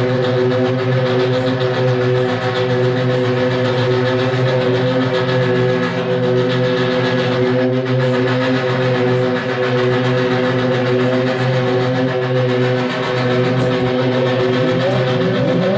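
A man sings into a microphone through loud speakers.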